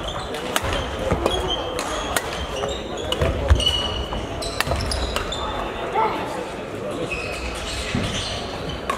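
Play echoes through a large hall.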